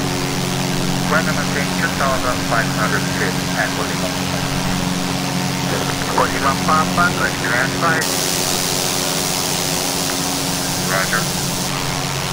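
A young man speaks calmly into a headset microphone.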